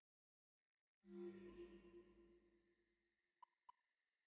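A deep whooshing swell sounds and slowly fades away.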